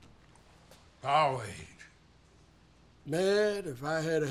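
An elderly man speaks with animation close by.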